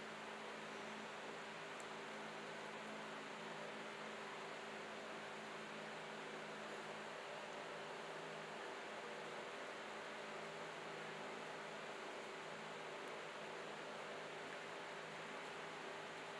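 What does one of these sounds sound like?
Fingers softly press and bend wet clay.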